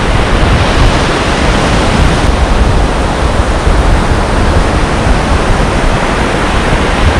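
Waves break on a shore in the distance.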